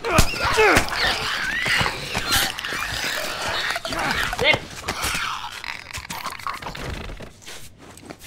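Heavy blows thud and crunch in a struggle.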